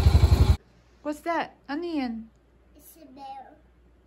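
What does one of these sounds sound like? A young child talks into a toy phone in a high, animated voice.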